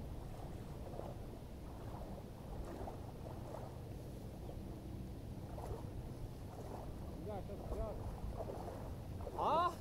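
Water splashes as a man rises and moves about in it.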